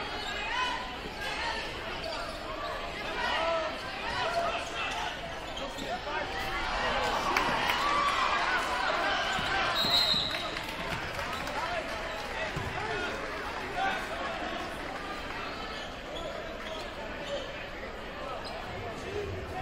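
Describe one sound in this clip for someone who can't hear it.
A large crowd cheers and shouts in an echoing gym.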